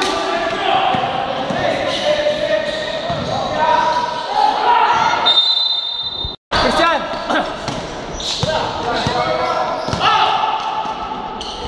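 Several young men shout and call out in an echoing hall.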